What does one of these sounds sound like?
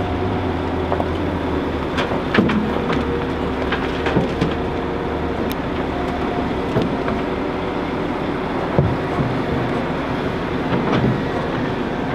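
Soil and stones thud and rattle as they drop into a dump truck.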